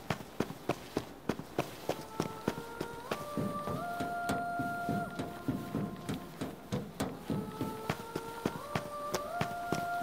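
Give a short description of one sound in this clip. Footsteps run quickly and evenly on hard ground.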